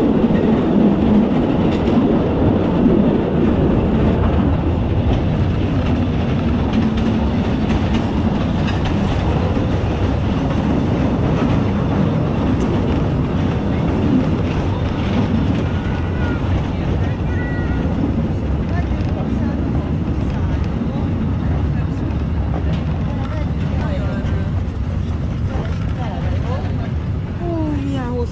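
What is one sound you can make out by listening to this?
A wagon rumbles steadily along.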